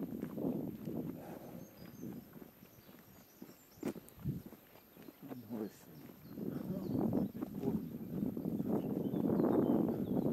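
Footsteps scuff along a paved path.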